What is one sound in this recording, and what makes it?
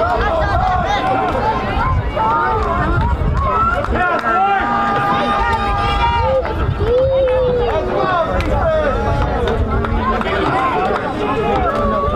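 Teenage boys talk and shout over one another nearby, outdoors.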